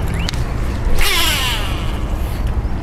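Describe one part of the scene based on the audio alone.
A fishing reel whirs briefly as a line is cast.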